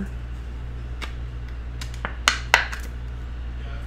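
Small hard objects click and tap as a man handles them.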